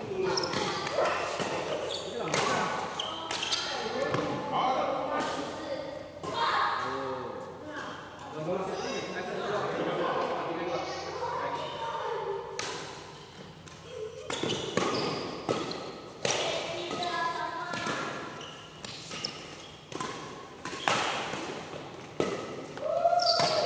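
Badminton rackets strike a shuttlecock with sharp pops.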